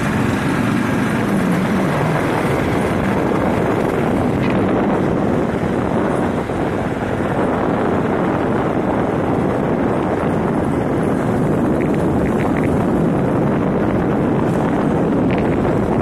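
Wind roars steadily past during a fast ride along a rough road.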